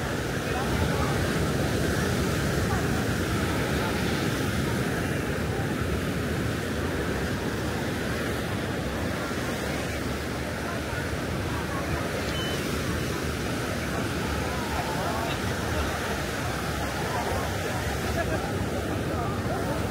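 Waves wash steadily onto the shore.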